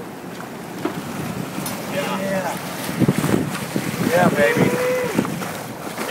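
Water churns and splashes close by.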